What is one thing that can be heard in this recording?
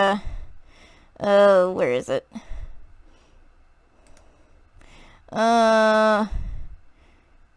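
A young woman speaks close to a microphone in drawn-out, sing-song tones.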